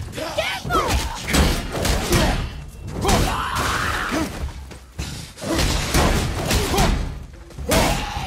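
A shield bashes with a dull metallic knock.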